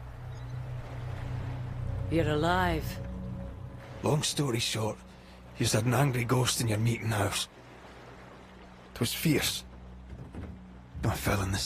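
Rough waves crash and churn.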